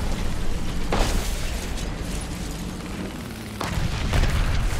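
A tank cannon fires with a sharp boom.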